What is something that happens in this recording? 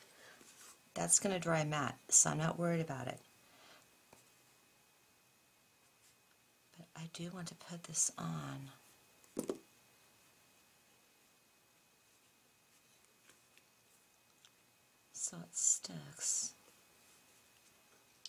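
Paper rustles softly under hands pressing it flat.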